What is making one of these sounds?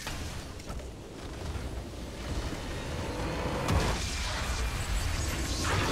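A game's base crystal shatters with a deep rumble.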